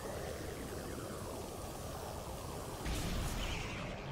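A weapon fires a beam with a hissing zap.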